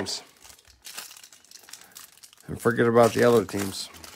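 A plastic wrapper crinkles and tears as it is opened by hand.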